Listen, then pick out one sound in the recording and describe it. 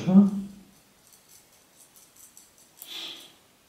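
A thin metal rod taps and scrapes softly in someone's hands.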